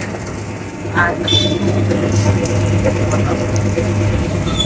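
Sugarcane crunches as the machine's rollers crush it.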